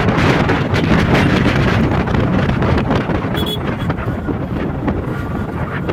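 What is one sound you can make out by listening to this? Wind rushes loudly past a riding motorcyclist.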